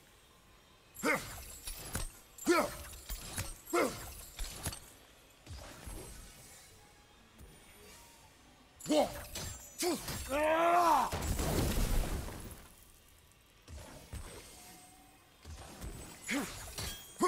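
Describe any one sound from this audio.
An axe whooshes through the air and strikes.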